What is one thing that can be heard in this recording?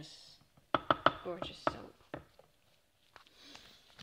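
A spatula scrapes and knocks against a ceramic pot.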